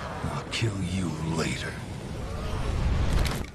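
A man speaks gruffly and menacingly, close up.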